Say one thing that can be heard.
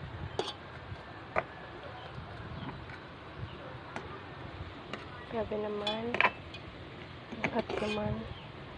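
A metal fork scrapes and clinks against a metal pot.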